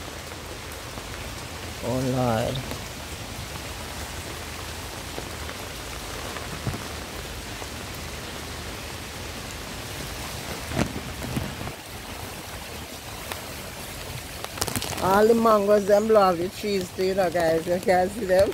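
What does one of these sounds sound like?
Strong wind gusts through leafy trees.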